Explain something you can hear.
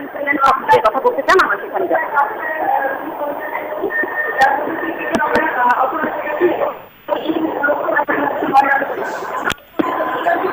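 A young woman reports into a microphone over a noisy crowd.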